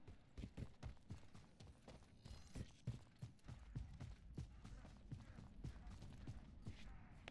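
Footsteps thud quickly and steadily on rocky ground.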